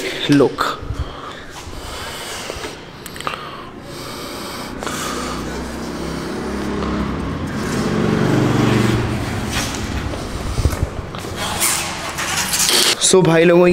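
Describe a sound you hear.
A man talks with animation close to the microphone in an echoing hall.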